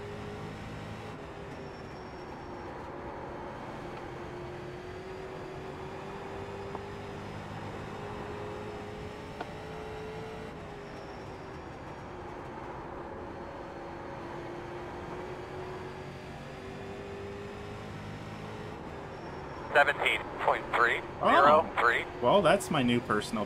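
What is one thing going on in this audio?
A race car engine drones steadily, rising and falling in pitch through the laps.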